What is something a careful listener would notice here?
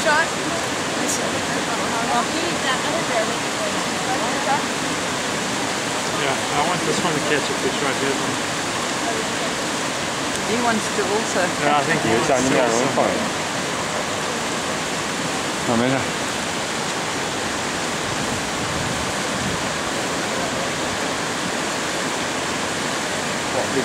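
A waterfall roars and rushes steadily close by.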